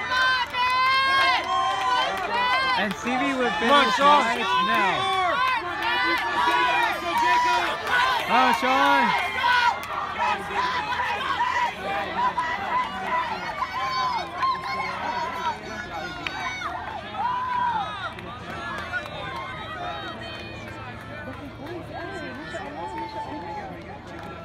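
A crowd of spectators cheers and shouts outdoors, loudest at first and then dying down.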